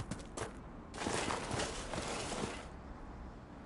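A body slides and scrapes down a rocky slope.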